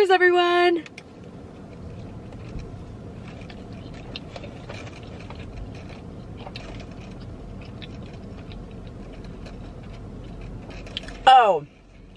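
A young woman chews food.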